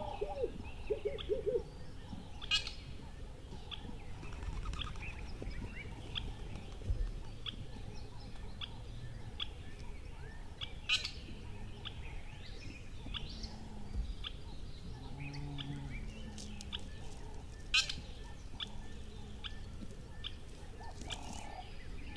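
Small birds chirp in short, regular calls.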